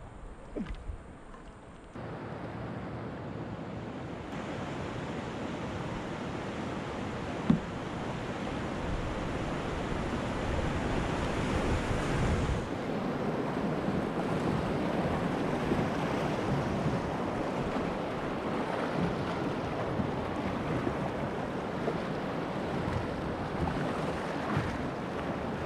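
A kayak paddle dips and splashes in the water.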